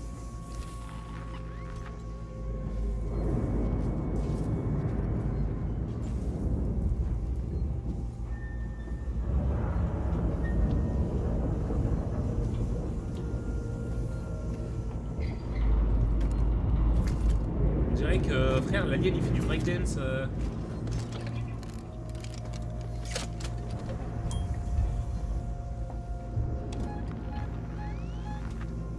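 A motion tracker beeps softly.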